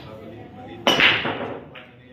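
A cue ball strikes a rack of pool balls with a sharp crack.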